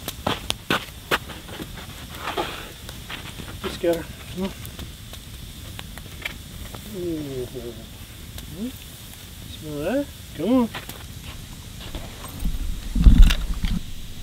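A campfire crackles and pops close by.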